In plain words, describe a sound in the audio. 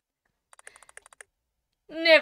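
Quick electronic blips chirp as game text types out.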